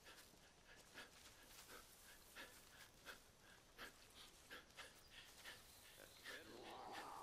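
Footsteps rustle through dry grass at a steady walking pace.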